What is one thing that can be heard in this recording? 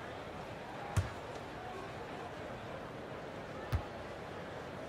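A basketball bounces on a hardwood court with a thud.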